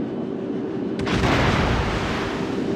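A shell crashes into the water nearby with a loud splash.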